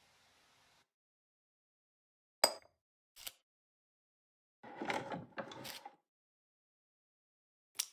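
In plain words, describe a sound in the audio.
Short game clicks sound as an inventory menu opens and closes.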